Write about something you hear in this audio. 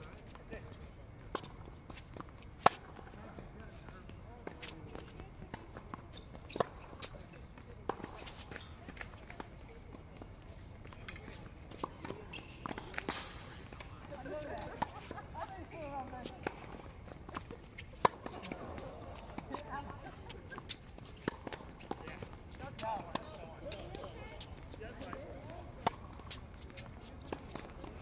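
Sneakers squeak and scuff on a hard court.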